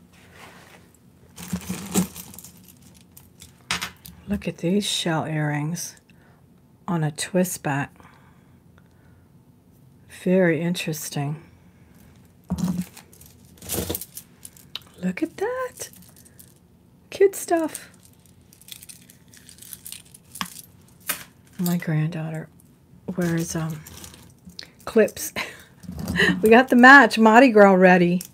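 Beads and metal jewelry clink and rattle as they are handled.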